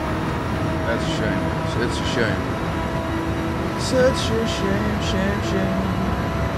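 A man talks briefly into a microphone.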